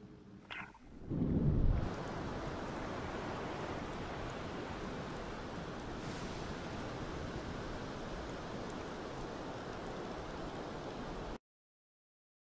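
Waves wash and roll steadily on the open sea.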